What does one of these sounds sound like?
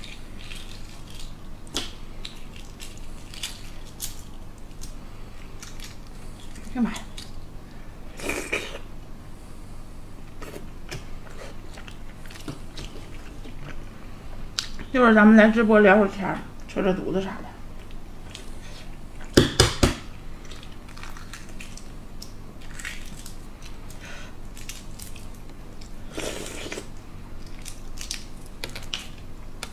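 Eggshells crack and crinkle as a young woman peels an egg.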